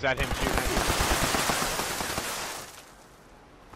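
A heavy gun fires in a rapid burst with a loud blast.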